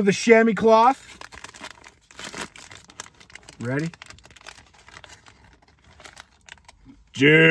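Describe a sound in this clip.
Paper rustles and crinkles as a wrapper is opened.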